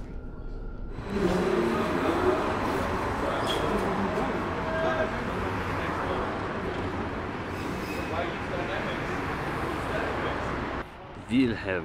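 Trams hum and rumble past outdoors.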